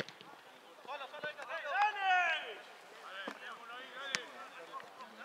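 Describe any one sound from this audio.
Young men shout to each other outdoors at a distance.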